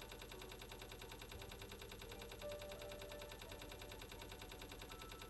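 Game coins clink rapidly, over and over.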